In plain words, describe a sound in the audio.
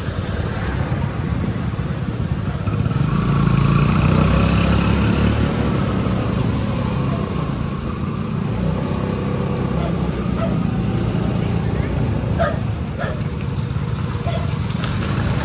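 Tyres roll on a wet road.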